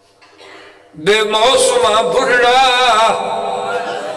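A man sings loudly into a microphone, his voice ringing through loudspeakers.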